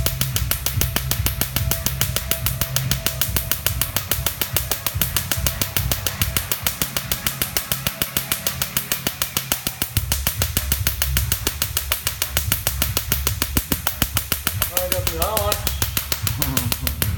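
A laser device snaps in rapid, steady pulses close by.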